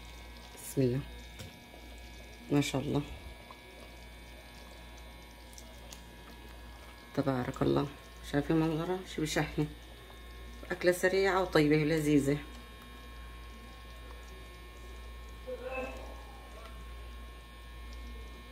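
Thick soup splashes softly as it is ladled into a bowl.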